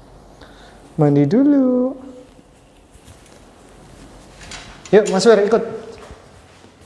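A small dog whines and yelps close by.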